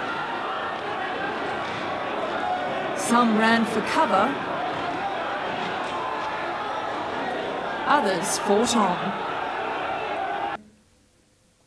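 A crowd of men clamours in a large echoing hall.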